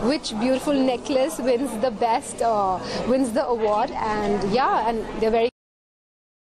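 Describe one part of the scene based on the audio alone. A young woman speaks cheerfully into microphones up close.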